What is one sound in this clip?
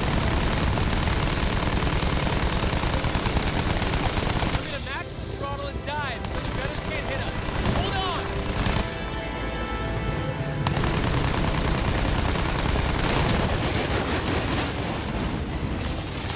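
Aircraft engines drone loudly and steadily.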